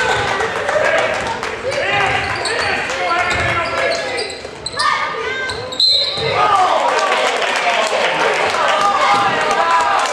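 A crowd in an echoing gym cheers and shouts throughout.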